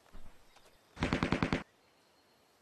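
A cartoon toy gun fires a quick rattling burst.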